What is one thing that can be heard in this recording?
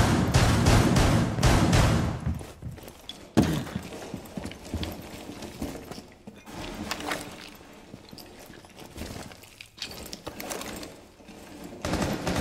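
Footsteps crunch over scattered debris.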